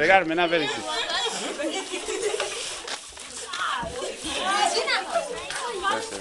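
A crowd of children chatter and shout excitedly nearby, outdoors.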